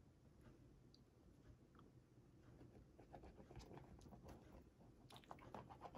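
A glue pen scratches across card stock.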